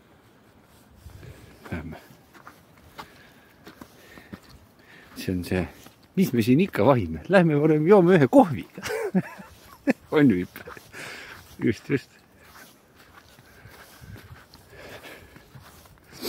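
Footsteps crunch on thin snow.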